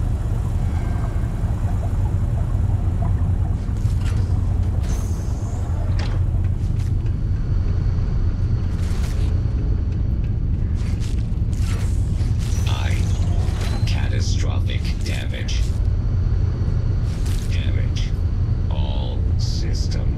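A low, steady machine hum drones throughout.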